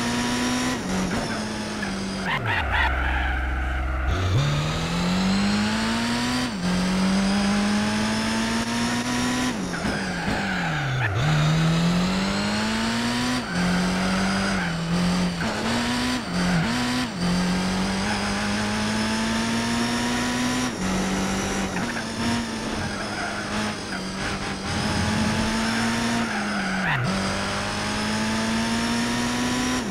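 A racing car engine roars, revving up through the gears and dropping as it shifts.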